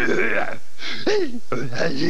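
A boy speaks casually up close.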